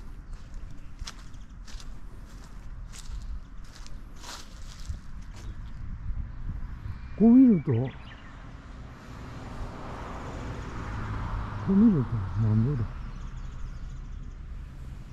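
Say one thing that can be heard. Wind blows gently outdoors.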